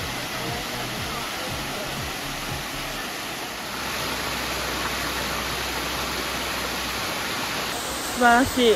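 A waterfall splashes and rushes as it cascades over rock ledges.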